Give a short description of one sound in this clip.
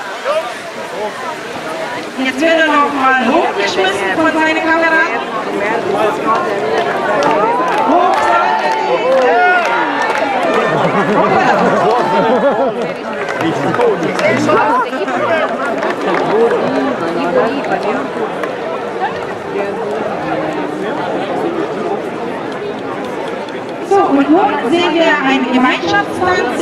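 A group of women and men sing loudly together outdoors.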